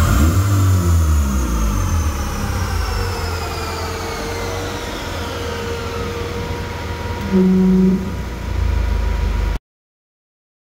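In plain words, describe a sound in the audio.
A spinning tyre whirs on a rolling road and slowly winds down.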